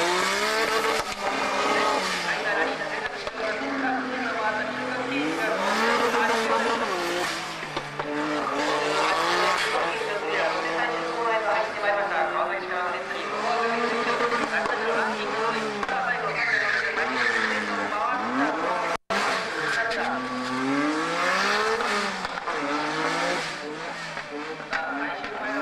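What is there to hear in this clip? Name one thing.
A racing car engine roars, revving up and down.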